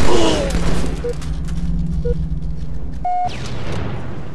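Short electronic beeps count down, the last one higher and longer.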